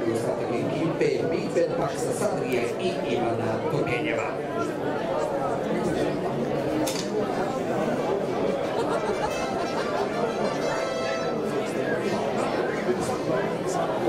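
A crowd chatters outdoors at a distance.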